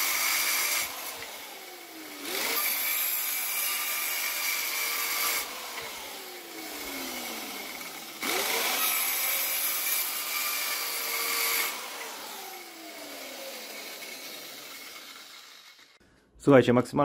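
A circular saw cuts through wood in loud bursts, winding down between cuts.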